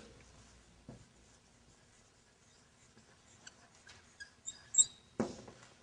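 A marker squeaks faintly on a board.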